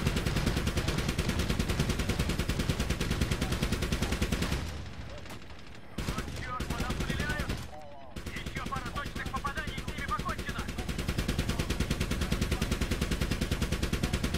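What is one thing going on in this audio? A helicopter's rotor thumps steadily and fast.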